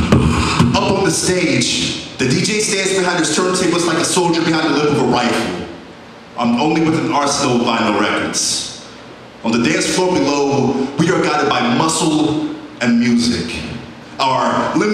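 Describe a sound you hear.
A man talks with animation into a microphone over a loudspeaker.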